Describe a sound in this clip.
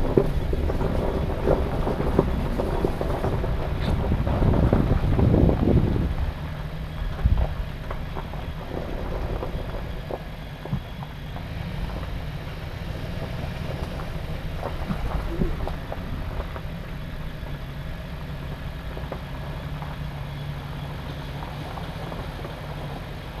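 Tyres crunch and bump over a rough dirt track.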